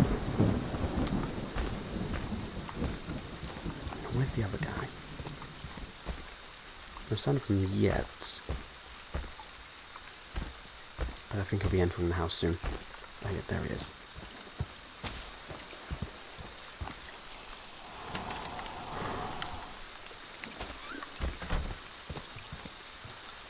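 Footsteps tread heavily on wet ground.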